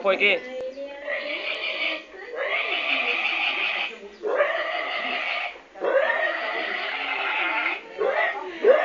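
A young man blows into his cupped hands, making long, steady hooting notes.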